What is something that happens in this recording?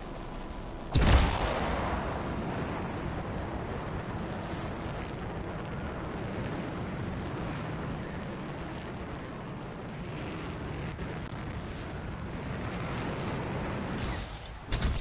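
Jet thrusters roar steadily as an armoured suit flies.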